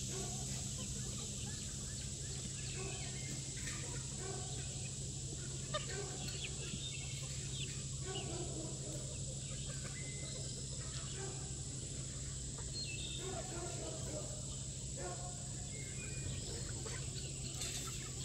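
A flock of chickens clucks and murmurs softly close by.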